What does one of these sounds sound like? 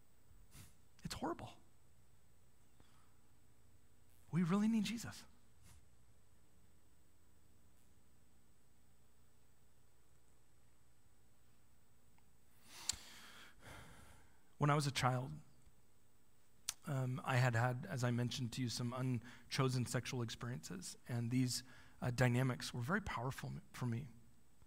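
A man speaks through a microphone, pausing often.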